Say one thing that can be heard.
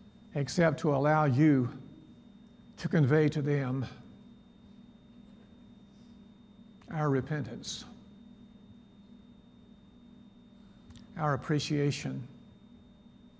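An elderly man speaks slowly and calmly through a microphone, in short phrases with long pauses.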